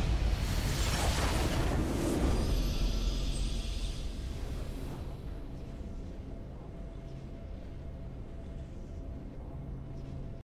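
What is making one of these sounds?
A triumphant fanfare plays and fades.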